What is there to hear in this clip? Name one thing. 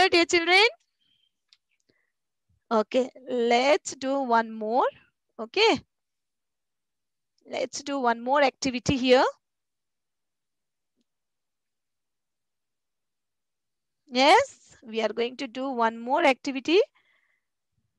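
A woman speaks calmly through a headset microphone, in short phrases with pauses.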